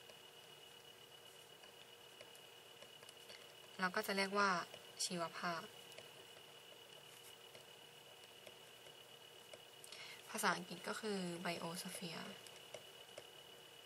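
A felt-tip pen squeaks and scratches across paper.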